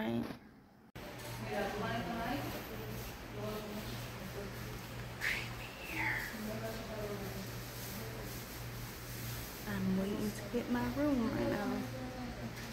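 A young woman talks casually close to the microphone.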